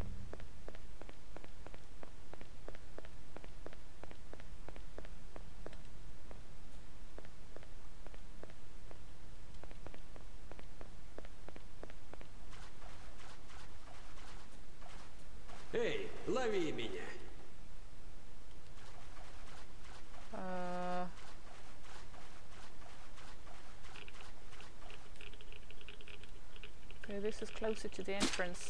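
Footsteps tread at a steady pace on a hard floor.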